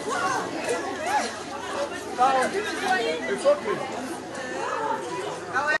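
A crowd of men and women talks and shouts loudly close by, outdoors.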